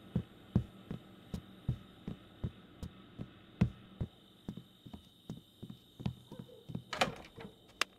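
Footsteps thud steadily on wooden stairs.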